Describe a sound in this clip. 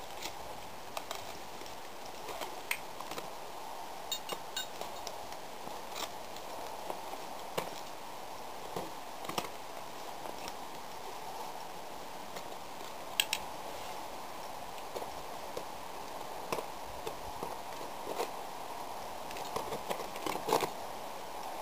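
Ice axes strike hard ice in sharp, uneven knocks.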